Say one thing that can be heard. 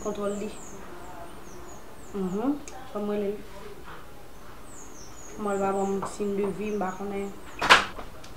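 A young woman speaks close by, calmly and with some feeling.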